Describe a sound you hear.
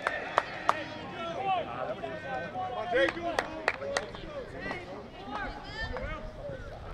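Young men and spectators shout and cheer outdoors at a distance.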